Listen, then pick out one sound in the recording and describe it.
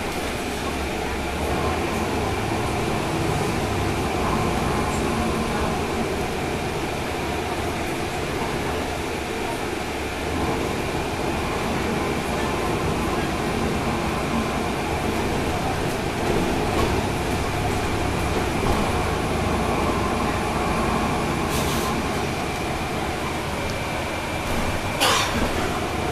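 A bus engine rumbles steadily from inside the bus.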